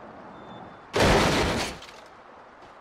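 A car crashes down off a broken bridge.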